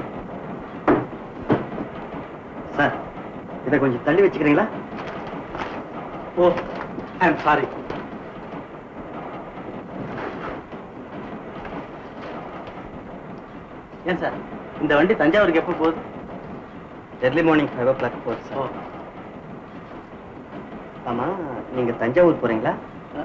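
A man speaks in a conversational tone, heard through an old film soundtrack.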